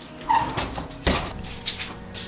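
An oven door shuts with a thud.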